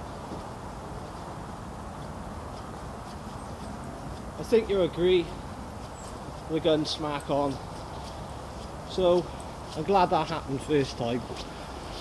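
Footsteps tread softly on wet grass.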